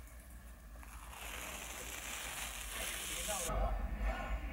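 A plastic strip crinkles and rustles as it is peeled off.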